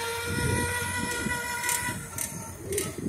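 A toy electric quad bike's motor whines steadily.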